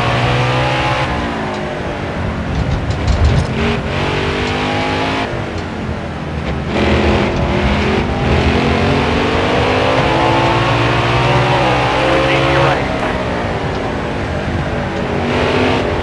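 A race car engine roars loudly, its pitch rising and falling as it shifts gears.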